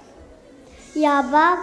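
A young girl sings into a microphone in an echoing hall.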